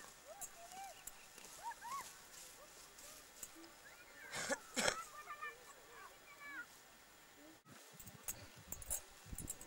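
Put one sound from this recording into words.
Grass rustles and tears as it is pulled up by hand.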